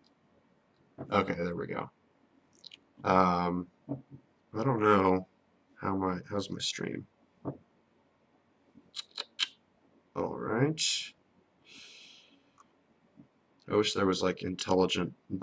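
A young man talks casually and close to a microphone, in short bursts with pauses.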